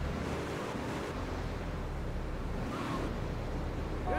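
Tyres screech as a car skids into a turn.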